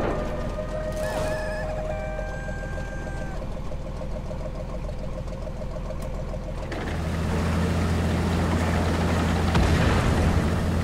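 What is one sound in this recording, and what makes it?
A tank's tracks clank and rattle over the ground.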